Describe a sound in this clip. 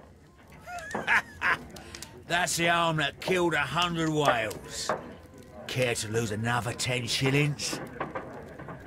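An older man laughs heartily and speaks boisterously up close.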